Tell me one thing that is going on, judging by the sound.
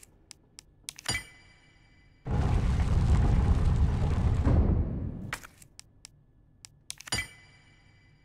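A metal medallion clicks into a slot.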